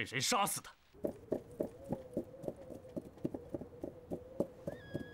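Horse hooves thud and clop on the ground.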